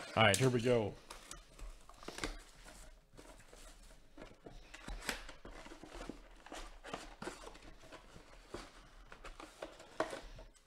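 Plastic wrap crinkles and rustles as a cardboard box is handled.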